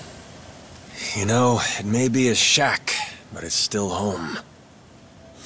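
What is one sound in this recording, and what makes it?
A man speaks in a low, weary voice close by.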